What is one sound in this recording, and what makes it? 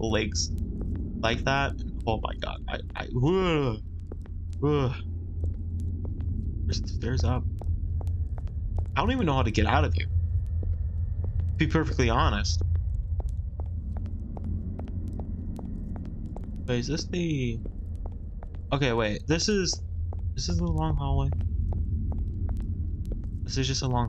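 A torch flame crackles and hisses softly.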